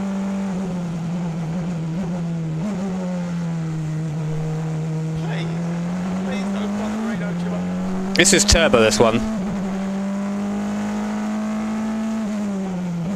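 A race car engine drones steadily from inside the cockpit, its pitch dipping and climbing with gear changes.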